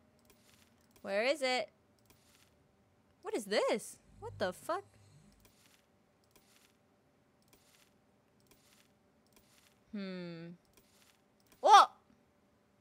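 A young woman speaks in short, lively bursts close to a microphone.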